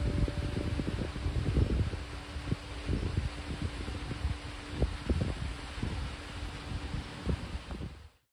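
A zither is plucked in a slow, ringing melody.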